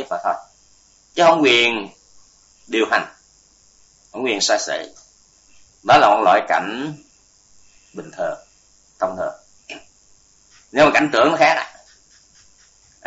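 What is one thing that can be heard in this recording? An elderly man speaks calmly in short phrases into a microphone.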